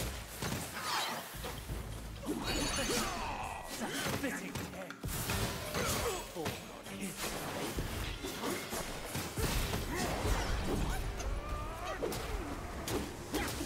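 Blades swish and clash in quick strikes.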